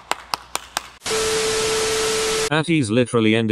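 Television static hisses loudly.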